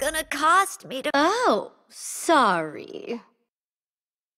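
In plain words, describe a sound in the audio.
A short victory jingle plays.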